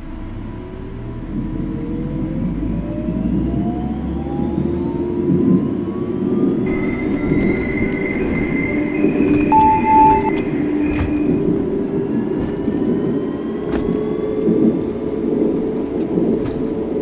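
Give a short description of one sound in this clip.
An electric train motor whines, rising in pitch as the train speeds up.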